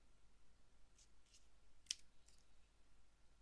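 A small toy clicks and taps as it is handled.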